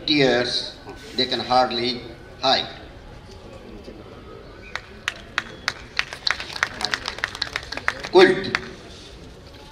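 An elderly man recites poetry expressively through a microphone.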